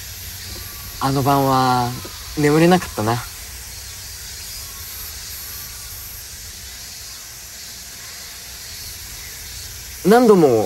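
A young man speaks softly and cheerfully nearby.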